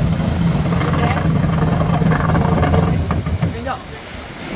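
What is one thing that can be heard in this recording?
A jet ski engine drones as it rides away over the water.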